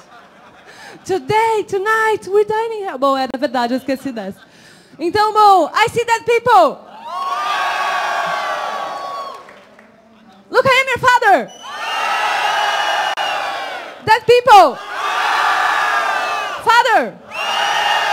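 A young woman sings out loudly through a microphone in a large hall.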